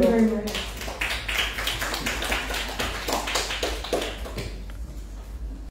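A woman speaks to a small audience in a room.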